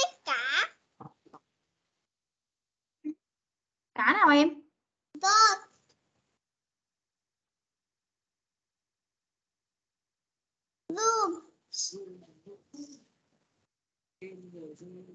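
A woman speaks clearly in short bursts through an online call.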